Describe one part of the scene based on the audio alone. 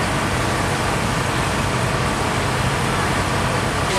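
Water gushes out of a leaking hose coupling and splashes onto the ground.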